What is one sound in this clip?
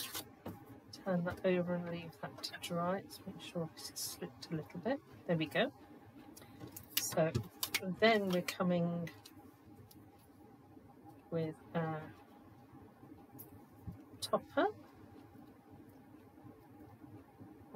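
Paper and card rustle and tap as they are handled.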